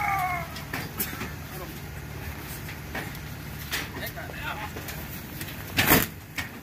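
Something heavy bumps and knocks against a trailer.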